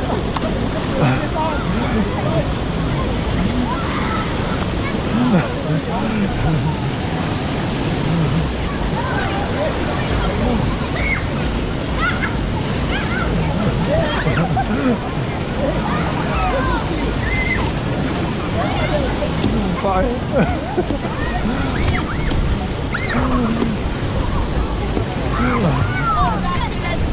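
Water splashes and rushes steadily in a pool.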